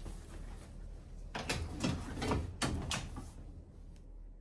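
A bag rustles and bumps as it is hung on a hook.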